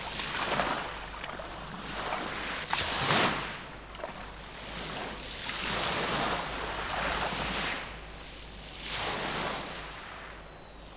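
Waves wash onto a pebble shore in slow, rushing swells.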